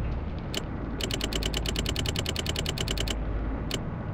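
Soft menu clicks tick rapidly as a list scrolls by.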